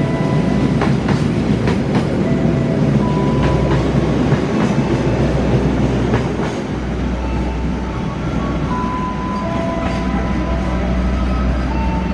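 A train rumbles past on the tracks.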